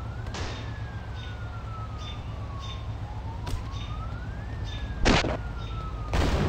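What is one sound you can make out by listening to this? A police siren wails, rising and falling slowly.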